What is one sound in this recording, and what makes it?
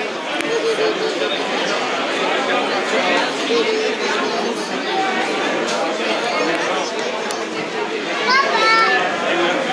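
A crowd of men and women chatter nearby in a large echoing hall.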